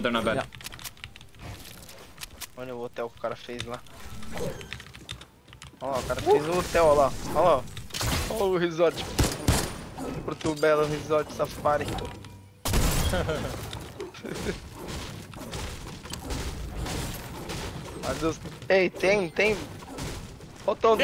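Game sounds of building and footsteps clatter throughout.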